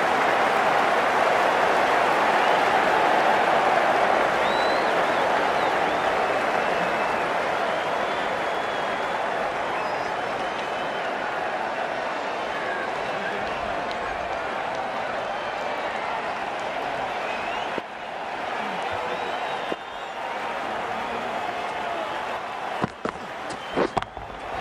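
A large crowd cheers and roars loudly, then slowly quietens.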